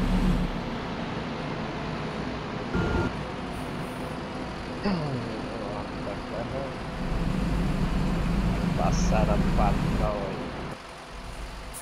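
A diesel coach bus engine drones as the bus drives.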